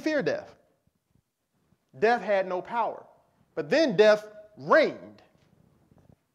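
A man speaks with emphasis into a microphone, in short bursts with pauses.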